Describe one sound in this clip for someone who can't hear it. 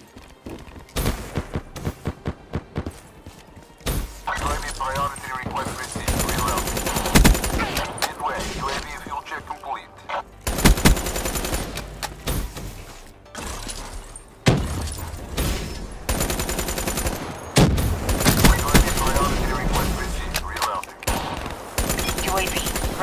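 An automatic rifle fires.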